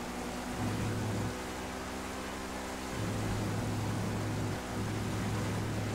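Rain hisses on a wet road.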